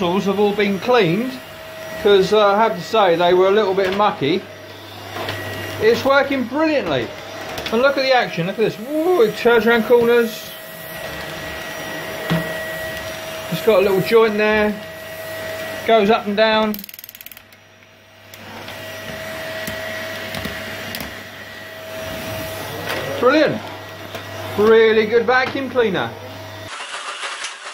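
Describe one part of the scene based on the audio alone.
A vacuum cleaner hums steadily as it sucks at carpet nearby.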